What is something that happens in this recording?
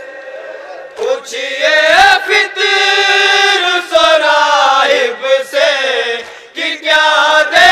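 A group of men joins in, chanting loudly together.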